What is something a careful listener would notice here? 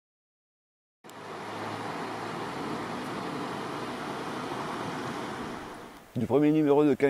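A river flows and rushes steadily outdoors.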